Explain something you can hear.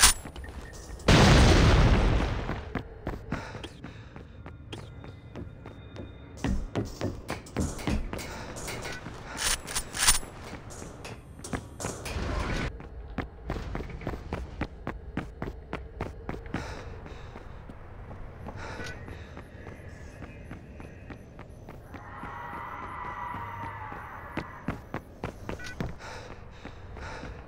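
Footsteps thud steadily across a hard floor.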